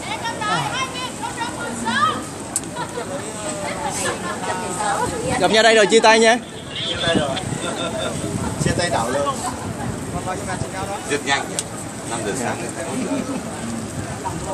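A crowd of young people talks and shouts close by, outdoors.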